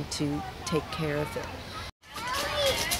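Young children call out and chatter outdoors.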